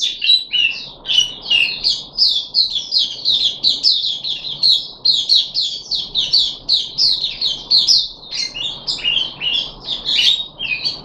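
A small songbird sings a fast, continuous warbling song close by.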